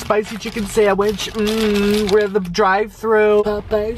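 Paper wrapping crinkles.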